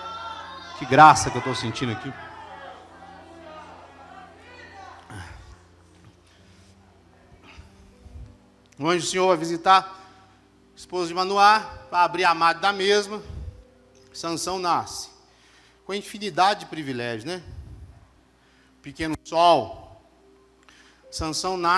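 A man preaches with animation through a microphone and loudspeakers in a large echoing hall.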